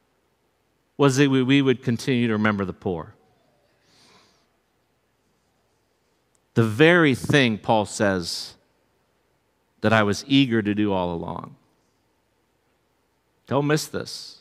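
A middle-aged man speaks with animation through a microphone, in short phrases with pauses.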